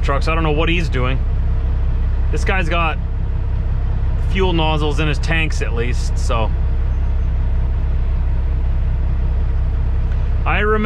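A truck's diesel engine idles with a steady low rumble.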